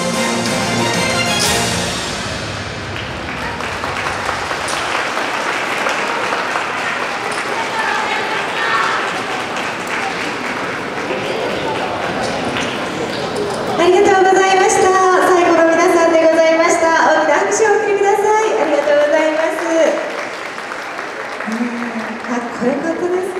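Lively music plays through loudspeakers in a large, echoing hall.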